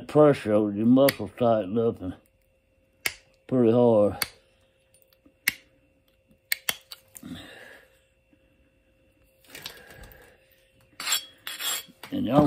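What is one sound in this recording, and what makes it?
A knife scrapes and shaves at a small piece of wood or stone.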